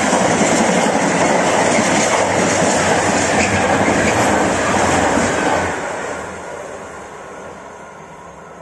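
A freight train rumbles and clatters past on the rails, then fades into the distance.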